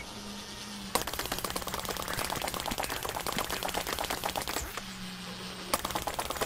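Rapid shots rattle steadily.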